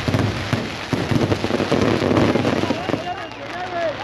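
Fireworks burst and crackle loudly overhead.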